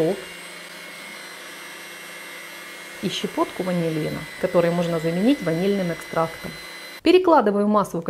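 A stand mixer whirs steadily.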